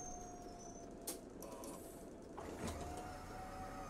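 Bus doors hiss and clunk open.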